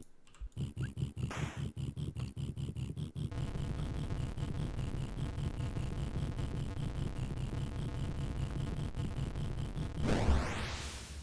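Electronic game music pulses with a steady beat.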